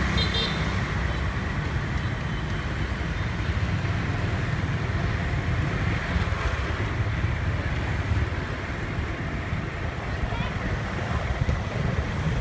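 Motor scooters ride along a street.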